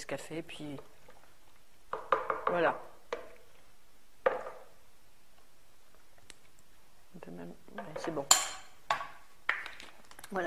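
A wooden spoon scrapes and knocks against a ceramic bowl.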